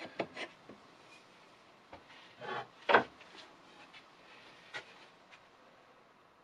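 Wooden parts knock and clatter as a man handles them.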